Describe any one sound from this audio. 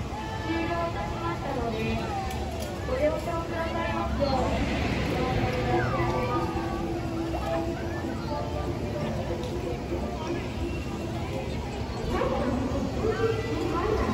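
Riders on a spinning swing ride scream and shout in the distance.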